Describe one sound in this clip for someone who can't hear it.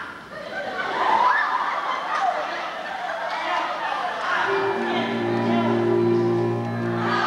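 A crowd claps and cheers in a large hall.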